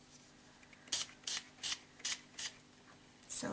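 A spray bottle spritzes in quick, short bursts.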